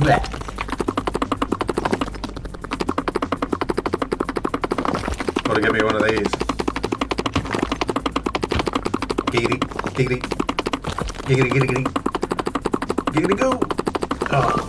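Rapid tapping and chipping sounds repeat quickly.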